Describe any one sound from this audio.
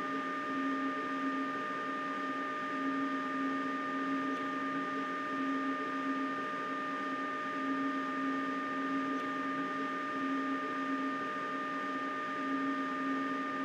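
Train wheels rumble on the track.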